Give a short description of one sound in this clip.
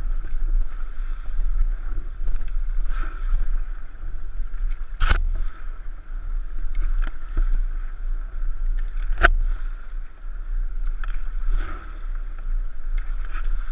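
Paddles splash and dip into river water.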